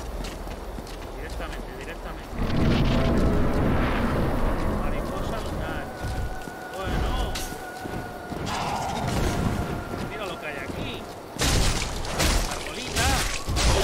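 A man talks into a microphone close by.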